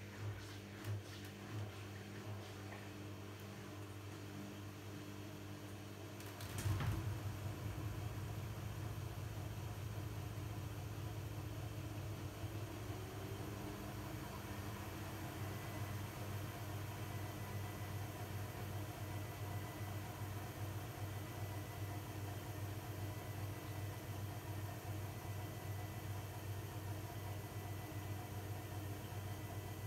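A washing machine hums steadily as its drum turns.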